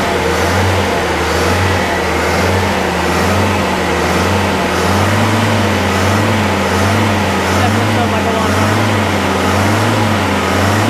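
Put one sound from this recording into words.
An engine idles nearby with a steady, slightly uneven rumble.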